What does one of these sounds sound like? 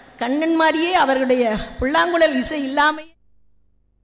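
A woman speaks into a microphone over loudspeakers, in a large hall.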